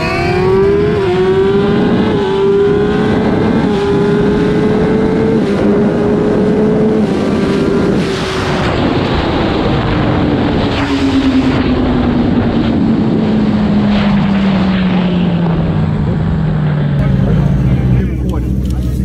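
A motorcycle engine hums steadily, its pitch slowly falling.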